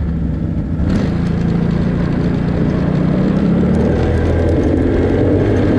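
A quad bike engine revs up and rises in pitch.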